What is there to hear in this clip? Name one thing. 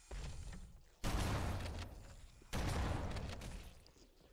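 Loud explosions boom and echo.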